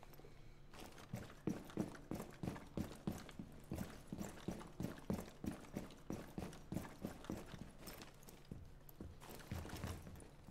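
Footsteps thud at a steady pace.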